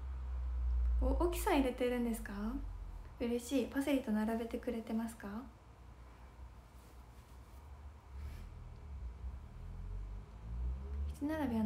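A young woman speaks softly and expressively close to a microphone.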